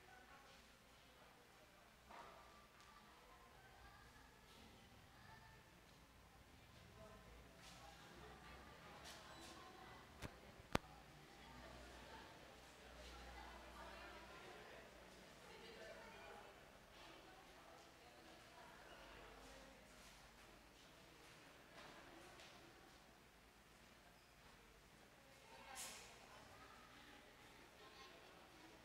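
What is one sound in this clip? A crowd of adults murmurs quietly in a large echoing hall.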